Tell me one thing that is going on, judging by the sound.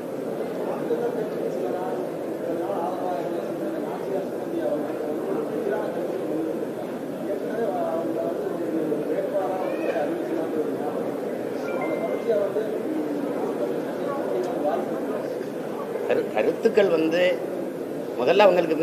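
A man speaks steadily into microphones.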